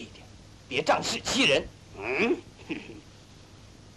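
A young man speaks sharply, close by.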